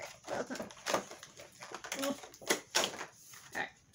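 Plastic wrapping crinkles as it is unwrapped.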